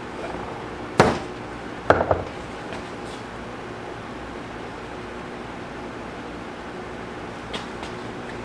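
Metal parts clank and knock together on a workbench.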